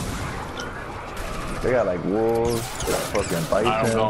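A pickaxe swings and whooshes through the air.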